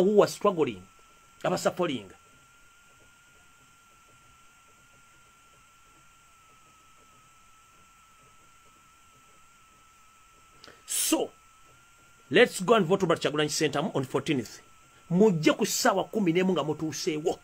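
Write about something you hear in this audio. A man speaks with animation close to a microphone, with long pauses.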